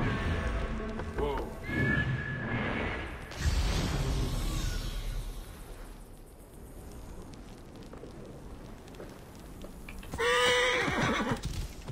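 A horse's hooves clop on rocky ground.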